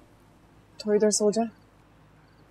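A young woman speaks quietly and briefly.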